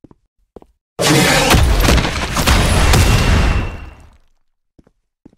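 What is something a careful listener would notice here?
A heavy blow smashes the ground with a loud crashing rumble.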